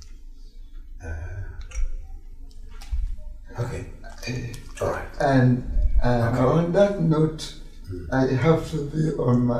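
An elderly man speaks firmly to another man nearby.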